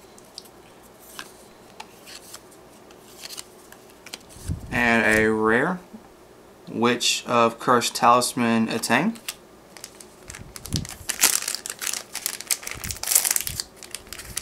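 Playing cards rustle and slide against each other as they are handled.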